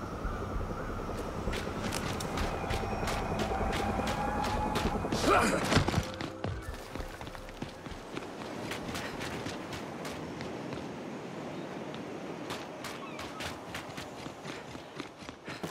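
Heavy boots tramp over rough ground.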